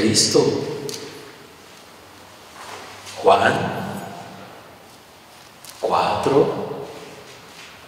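A man speaks calmly into a microphone in short phrases, with an echo in the room.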